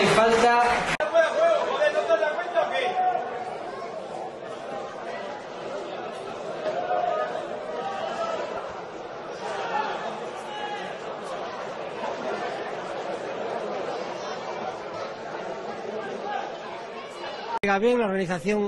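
A crowd murmurs in an open stadium.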